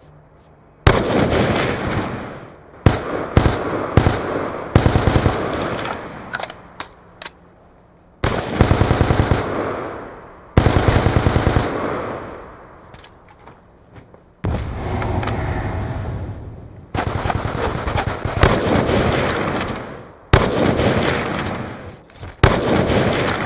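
Heavy rifle shots boom and echo.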